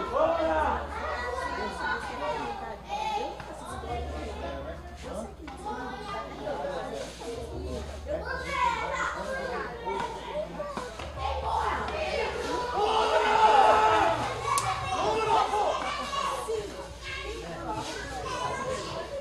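Men talk and call out nearby, outdoors.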